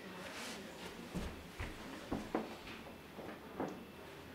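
Footsteps thud as a man walks away.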